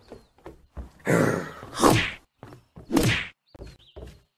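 A weapon strikes a zombie with heavy thuds.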